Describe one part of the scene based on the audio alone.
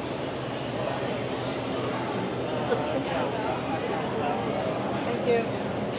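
A crowd of people chatters around in an echoing indoor space.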